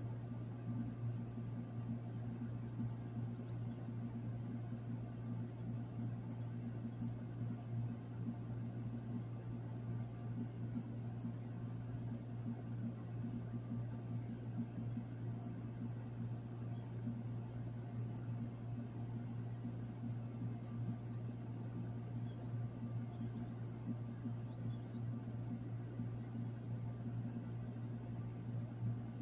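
An outdoor unit hums steadily with a low drone close by.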